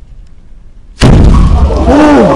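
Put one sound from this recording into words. A loud explosion bangs and echoes in a room.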